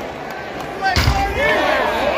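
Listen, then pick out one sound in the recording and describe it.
A puck thuds against the boards.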